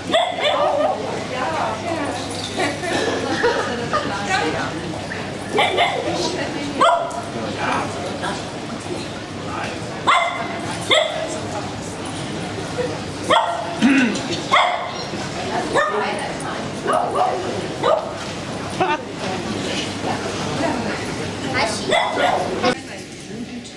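Men and women chat nearby in a large, echoing hall.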